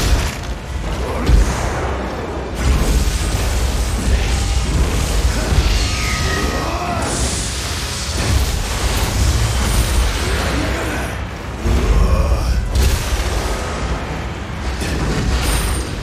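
Heavy blades slash and thud into creatures again and again.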